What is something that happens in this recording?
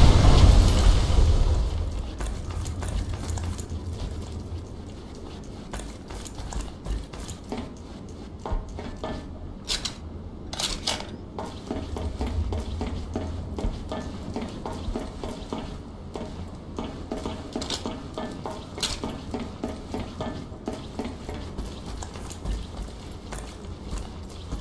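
Footsteps thud steadily on hard floors and metal walkways.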